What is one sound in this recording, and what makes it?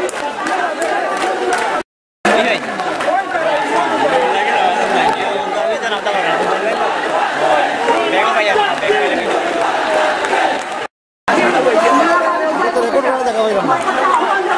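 A large crowd of young men shouts and chants outdoors.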